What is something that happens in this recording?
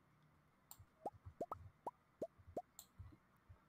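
Soft short pops sound as mushrooms are picked up.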